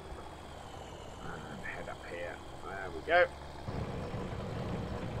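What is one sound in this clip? A tractor engine rumbles steadily and grows louder.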